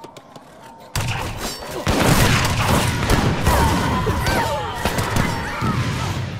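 Musket shots crackle and battle clamour rises in a fierce fight.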